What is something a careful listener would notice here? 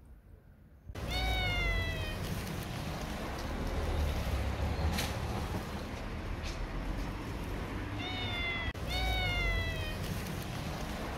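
A cat meows loudly and insistently close by.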